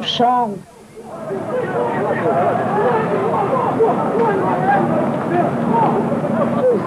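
A crowd of people shouts and yells outdoors.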